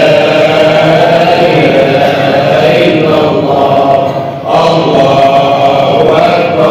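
A large crowd of men chants together loudly in an echoing hall.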